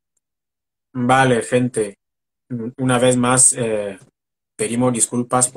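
A young man speaks with animation, close to the microphone.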